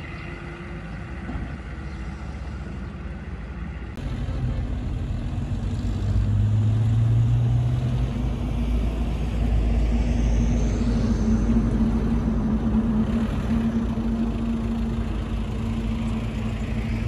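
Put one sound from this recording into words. A bulldozer engine rumbles and drones steadily nearby.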